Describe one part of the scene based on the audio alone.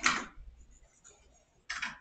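A kitten's paws patter across a wooden floor.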